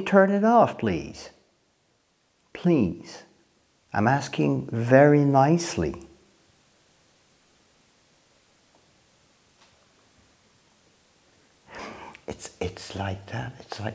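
A man speaks nearby with animation.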